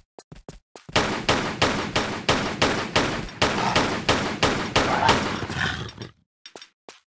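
Pistol shots fire rapidly and loudly.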